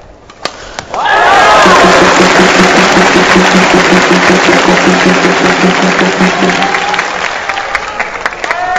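A crowd applauds and cheers in a large indoor arena.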